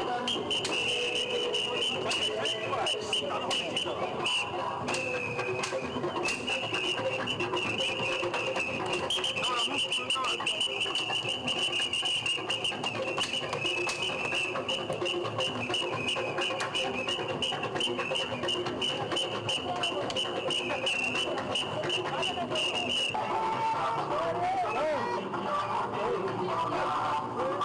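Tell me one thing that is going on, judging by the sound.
A lively crowd chatters and calls out outdoors.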